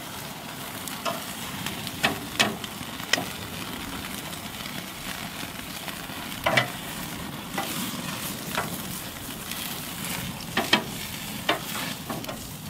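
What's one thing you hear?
Metal tongs click against a grill grate.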